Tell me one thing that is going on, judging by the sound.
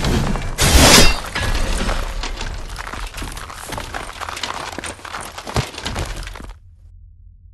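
A deep rumbling roar fills the air and then cuts off.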